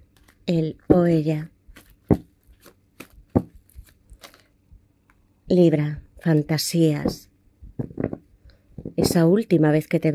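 Playing cards shuffle and slap softly together.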